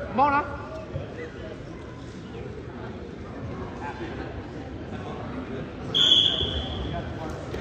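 A crowd of spectators murmurs and calls out in an echoing gym.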